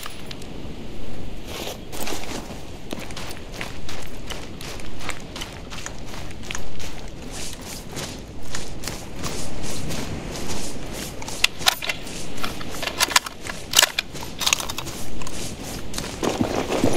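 Footsteps crunch quickly over gravel and grass.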